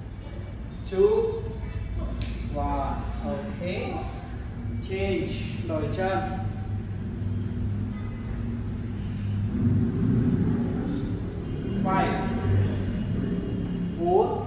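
A woman gives instructions to a class in a large echoing room.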